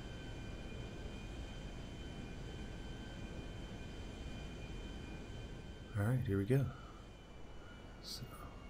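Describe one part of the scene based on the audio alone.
A jet plane's engines drone steadily.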